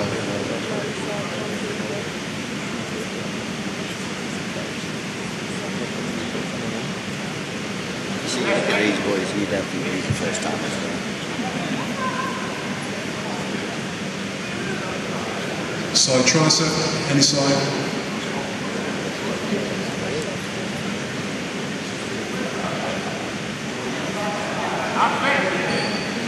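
An audience murmurs steadily in an echoing hall.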